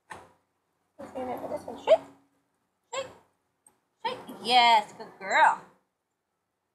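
A woman talks to a dog in a coaxing, animated voice, close by, outdoors.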